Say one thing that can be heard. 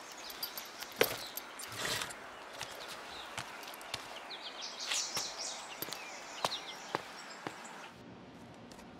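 A man rustles and knocks a bag against a motorbike.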